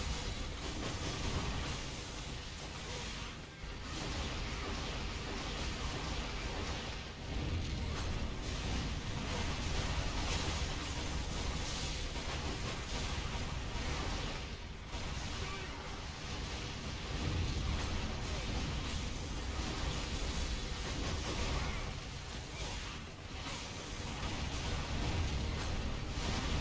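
Magic spells crackle and boom in a fight with a huge monster.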